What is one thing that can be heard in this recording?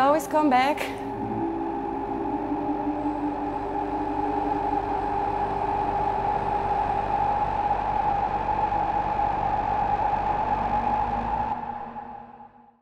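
An electronic synthesizer plays a steady humming drone that fades out at the end.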